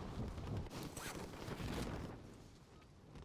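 Wind rushes past during a fall through the air.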